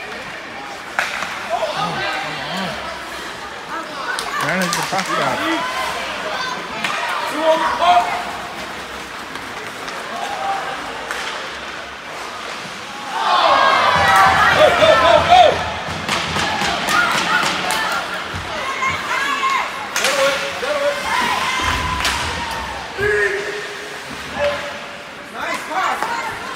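Sticks clack against a puck.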